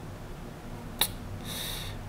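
A game stone clicks sharply onto a board.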